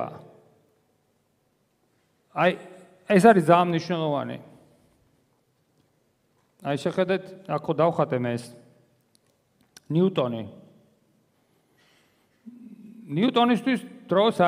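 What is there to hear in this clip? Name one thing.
A man lectures calmly through a microphone in a large echoing hall.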